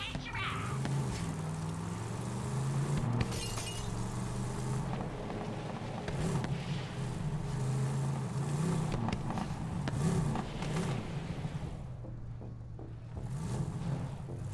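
A vehicle engine roars and revs steadily.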